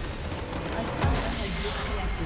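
A large crystal explodes with a deep boom.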